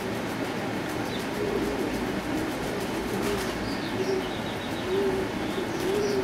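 A dove flaps its wings as it takes off.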